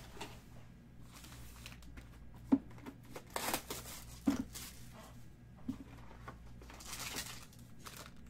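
Foil wrapping crinkles as hands handle card packs.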